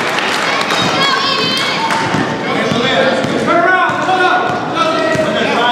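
A basketball bounces repeatedly on a hard floor.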